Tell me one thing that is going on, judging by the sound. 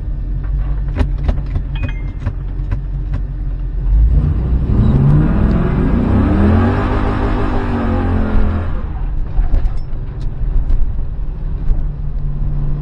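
A car's interior rattles and knocks over a bumpy road.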